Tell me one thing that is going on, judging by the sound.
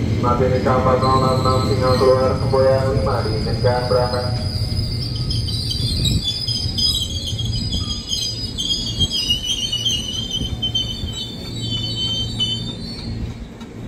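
Train brakes squeal high as the train slows.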